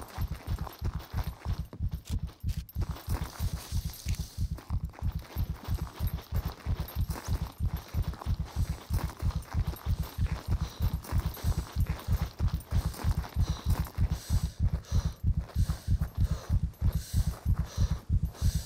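Footsteps thud quickly and steadily on dry ground.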